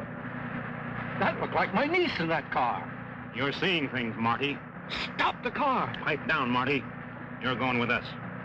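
An older man talks urgently.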